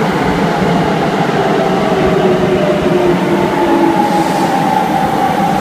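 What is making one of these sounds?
A train's brakes squeal as it slows.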